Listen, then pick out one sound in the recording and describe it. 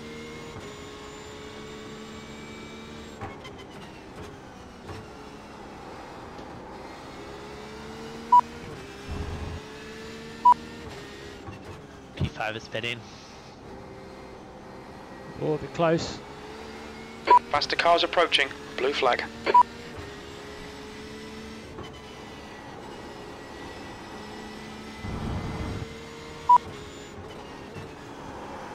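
A racing car engine roars steadily, rising and dropping in pitch as the car shifts gears.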